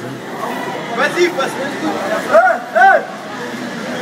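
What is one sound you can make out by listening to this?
Young adults in a crowd shout and cheer in an echoing underground station.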